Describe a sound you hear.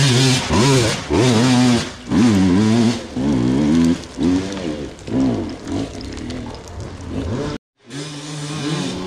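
A dirt bike engine revs up and down repeatedly.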